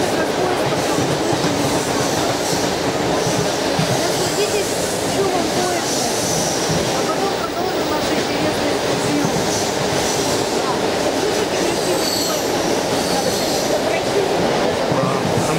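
A middle-aged woman talks and laughs close by.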